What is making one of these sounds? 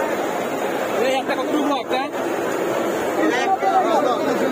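Men talk loudly nearby in a busy crowd.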